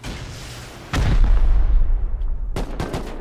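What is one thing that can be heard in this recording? An explosion booms and crackles with fire.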